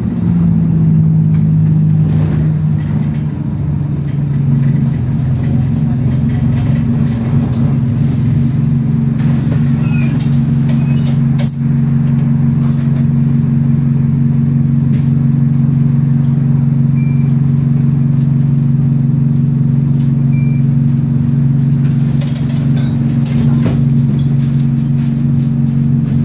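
A bus engine hums steadily while the bus drives.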